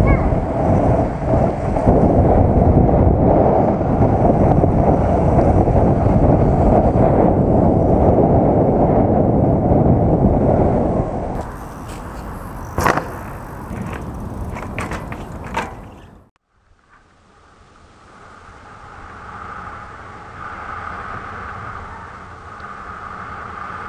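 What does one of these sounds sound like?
Bicycle tyres rumble over dirt.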